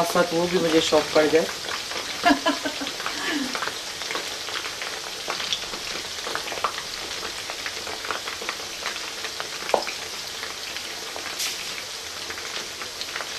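Oil sizzles and crackles steadily as food deep-fries.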